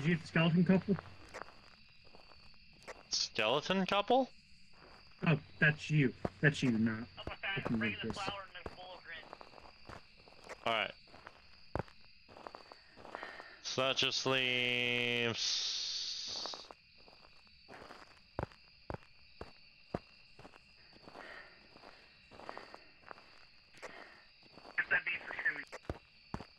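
A young man talks into a headset microphone with animation.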